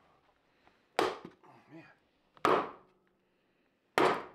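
An axe strikes a wooden log with sharp, heavy thuds.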